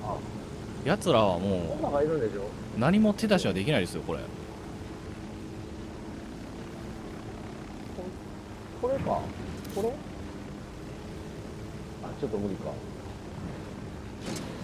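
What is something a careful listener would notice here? A helicopter's rotor whirs and drones steadily.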